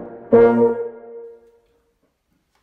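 A tuba plays a single held note that fades out.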